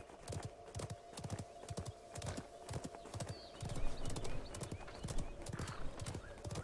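A horse gallops with quick, rhythmic hoofbeats.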